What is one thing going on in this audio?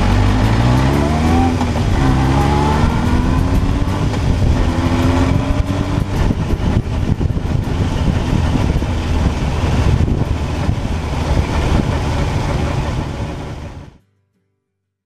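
A motorcycle engine roars close by as the bike rides along.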